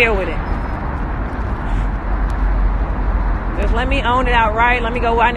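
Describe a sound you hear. A young woman talks casually close to a phone microphone.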